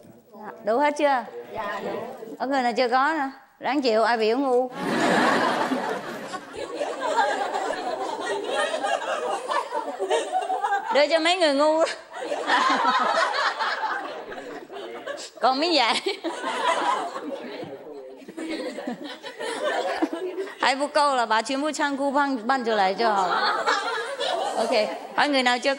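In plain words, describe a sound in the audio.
A woman speaks with animation into a microphone.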